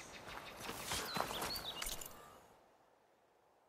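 A figure rustles through tall dry grass.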